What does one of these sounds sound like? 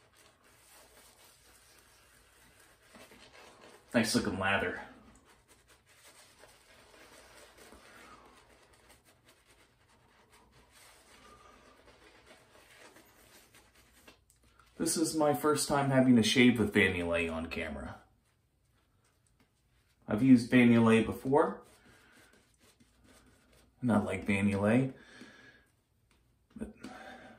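A shaving brush swishes and scrubs softly against stubble.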